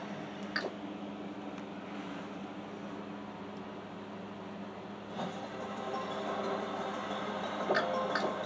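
Game music plays through a television speaker, growing louder partway through.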